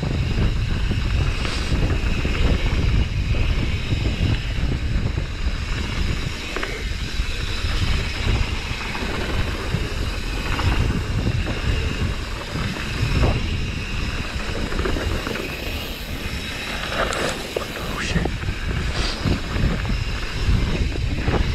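Wind buffets a microphone, rumbling steadily.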